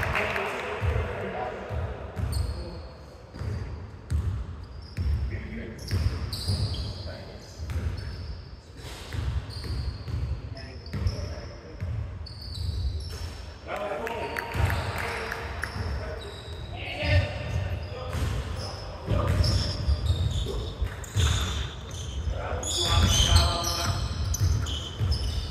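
A basketball bounces on a wooden floor, echoing in a large hall.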